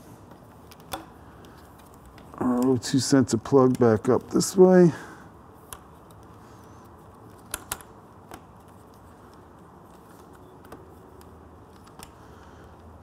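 Small plastic connectors click and snap faintly.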